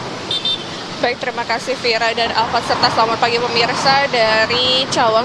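A young woman speaks clearly and steadily into a microphone outdoors.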